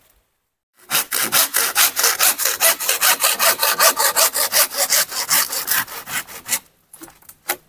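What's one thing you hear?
A hand saw cuts through bamboo with quick, rhythmic strokes.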